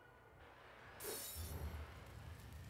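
A firebomb bursts into flames with a loud whoosh.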